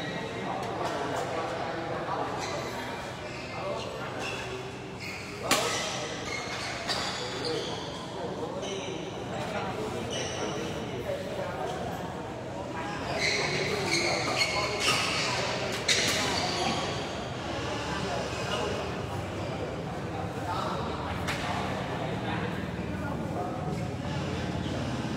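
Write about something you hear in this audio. Shoes squeak and scuff on a hard court.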